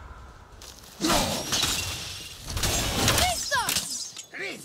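An axe strikes with a heavy thud.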